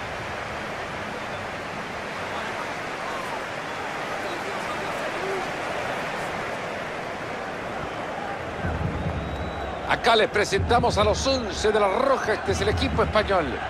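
A large stadium crowd cheers and chants in a steady roar.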